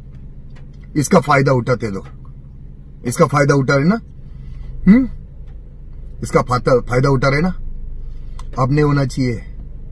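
A man speaks close up with animation, in short bursts with pauses.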